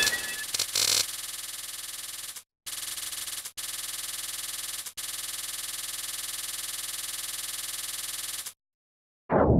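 Rapid electronic shots fire in a steady stream.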